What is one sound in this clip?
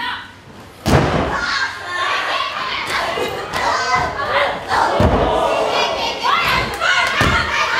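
A young woman shouts and yells with effort.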